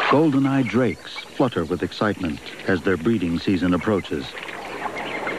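Ducks call with short nasal cries.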